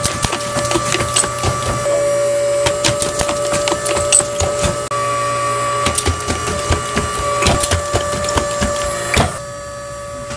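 Pneumatic machine arms clack and hiss as they press metal.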